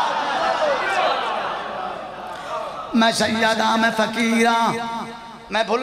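A man recites loudly and with feeling into a microphone, heard through loudspeakers.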